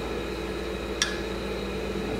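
A metal tool clicks sharply against an engine part.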